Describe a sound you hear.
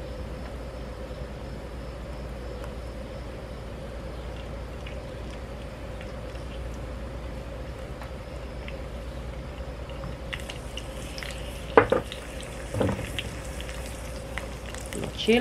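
Food sizzles and crackles in hot oil in a pan.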